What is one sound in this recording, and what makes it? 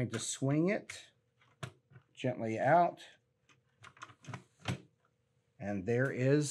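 Plastic parts scrape and click as a computer case is handled.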